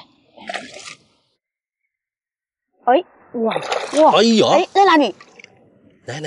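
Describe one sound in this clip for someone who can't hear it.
Water sloshes and splashes as a hand stirs it.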